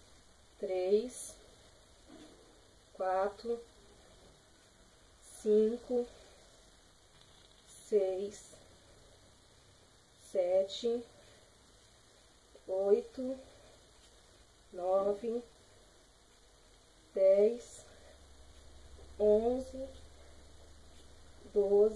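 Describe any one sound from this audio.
A woman counts aloud in short, evenly spaced calls.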